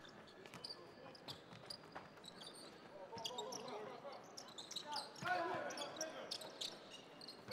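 A basketball is dribbled on a hardwood court in a large echoing arena.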